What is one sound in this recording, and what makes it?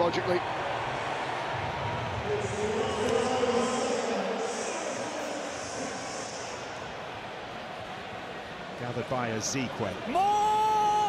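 A large stadium crowd murmurs and chants steadily in the open air.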